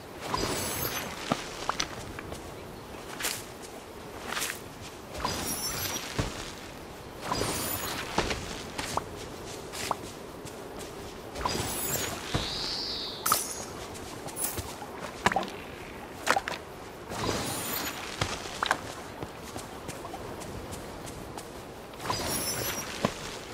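Magical chimes sparkle and shimmer in short bursts.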